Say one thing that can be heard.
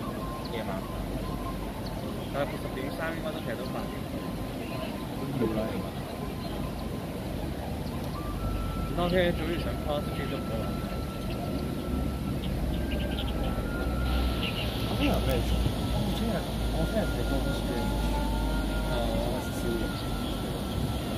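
Men and women chatter at a distance outdoors.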